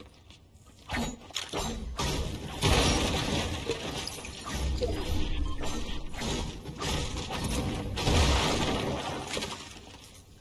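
A pickaxe strikes and smashes wooden objects in quick succession.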